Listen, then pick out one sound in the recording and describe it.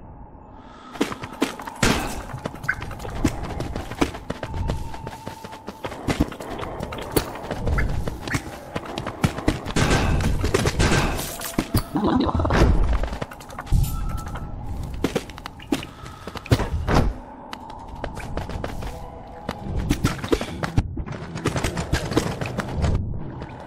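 Light footsteps patter quickly over hard ground.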